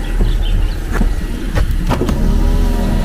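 A car's window switch clicks a few times.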